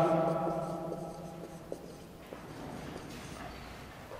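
A marker scrapes faintly on a whiteboard.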